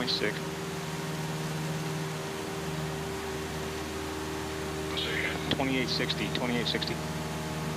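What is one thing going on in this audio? A steady engine drone hums throughout.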